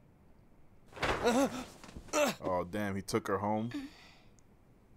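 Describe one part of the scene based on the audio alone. A young man talks in a startled voice, close by.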